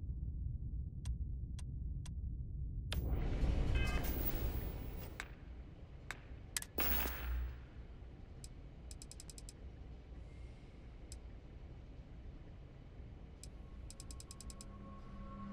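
Soft electronic menu clicks tick in quick runs.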